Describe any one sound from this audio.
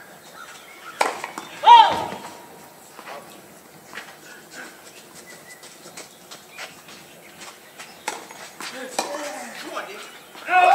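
A tennis ball is struck back and forth by rackets.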